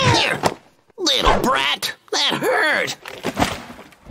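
A man mutters and grumbles in an animated cartoon voice.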